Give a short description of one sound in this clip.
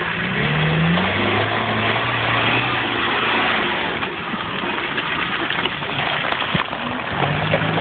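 Tyres churn and squelch through thick mud.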